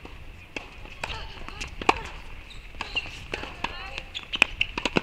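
A racket strikes a tennis ball with sharp pops.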